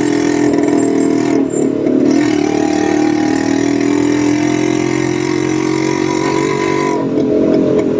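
Traffic rumbles along a busy road.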